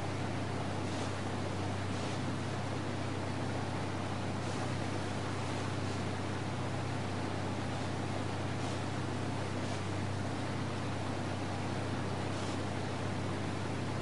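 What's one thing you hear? A motorboat engine drones steadily at high speed.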